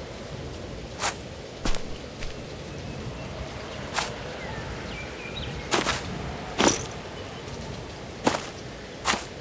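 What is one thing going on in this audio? A hammer knocks sharply on wood, again and again.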